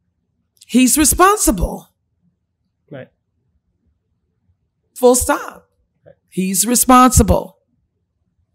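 A woman speaks with animation into a close microphone, in short phrases with pauses.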